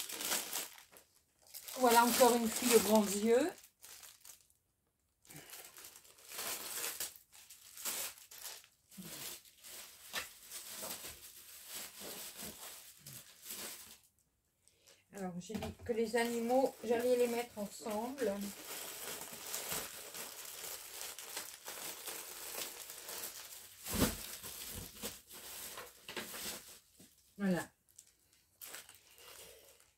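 Plastic packets rustle and crinkle as they are handled.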